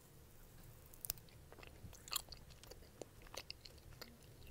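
A young woman chews and bites close to a microphone.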